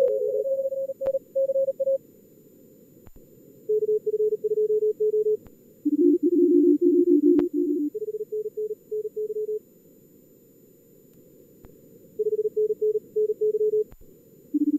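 Morse code tones beep in quick bursts, at a few different pitches.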